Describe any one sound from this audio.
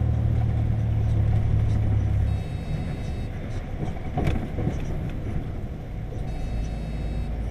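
Tyres roll on the road with a steady rushing noise.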